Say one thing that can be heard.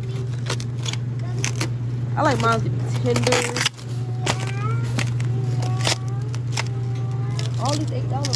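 Plastic wrapped packages rustle and crinkle as they are handled.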